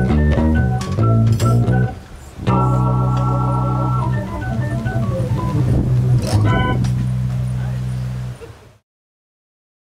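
An electric bass guitar plays a walking line.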